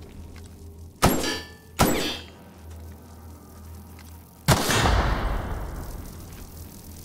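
A gun fires sharp, loud shots that ring out.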